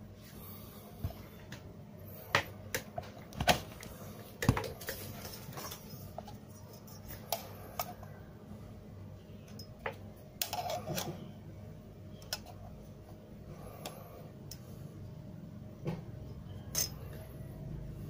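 A plastic device knocks and clicks as it is handled.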